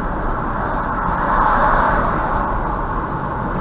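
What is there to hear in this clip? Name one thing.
Another car passes close by with a rising whoosh.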